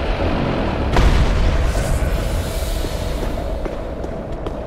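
Fire bursts and roars in a loud blast.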